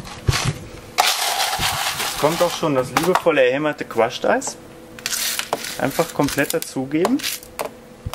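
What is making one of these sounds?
Ice cubes rattle and clatter into a glass.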